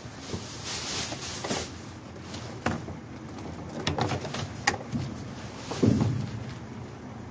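A cardboard box scrapes and thumps as it is moved.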